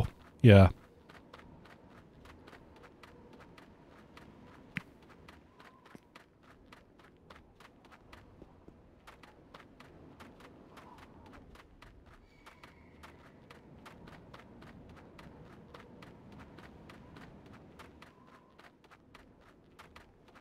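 Footsteps patter quickly and evenly on snow.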